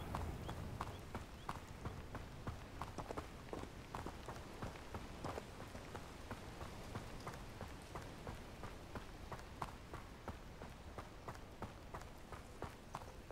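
Footsteps run quickly over a dirt path.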